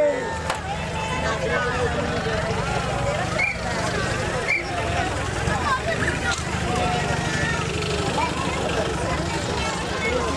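A small truck engine putters as it drives slowly by.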